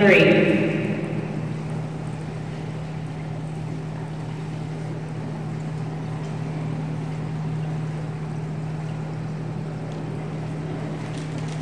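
Pool water laps faintly in a large echoing hall.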